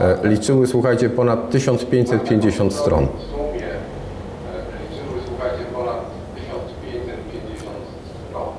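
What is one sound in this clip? A middle-aged man speaks calmly and close into a headset microphone.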